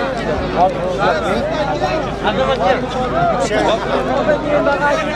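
A large crowd of men shouts and calls out over one another outdoors.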